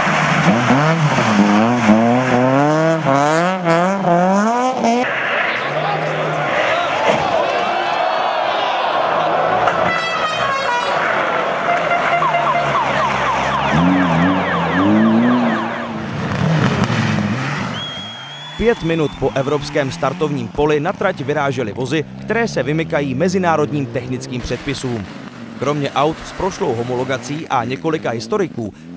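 A rally car engine revs hard and roars past.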